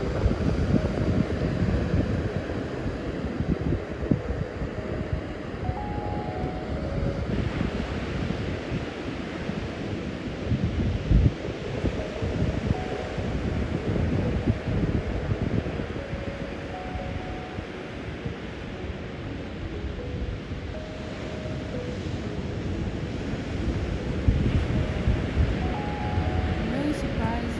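Waves wash and break gently on a shore.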